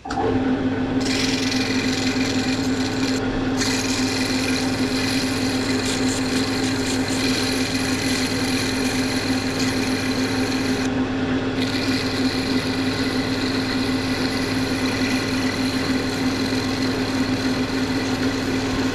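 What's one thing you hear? An abrasive pad rubs against a spinning workpiece with a steady hiss.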